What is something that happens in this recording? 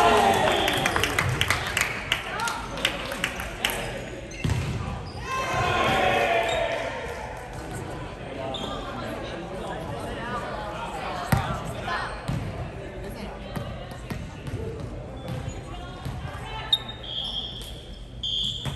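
Young men and women call out and chatter loudly in the echoing hall.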